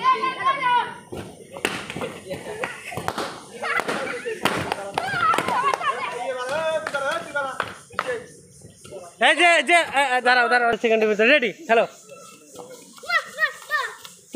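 Children shout and cheer excitedly outdoors.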